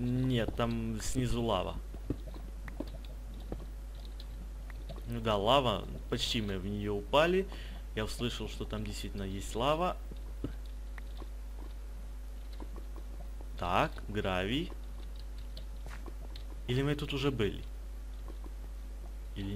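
A pickaxe chips at stone blocks.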